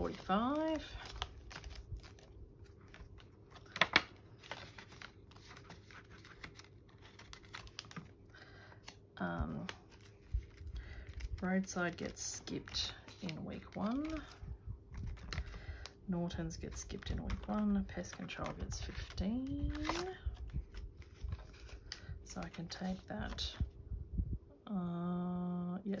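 Plastic sleeves crinkle and snap in a binder.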